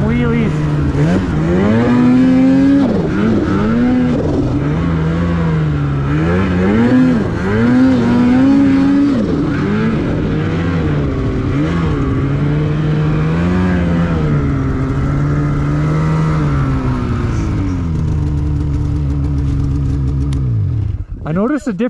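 A snowmobile engine drones and revs up and down close by.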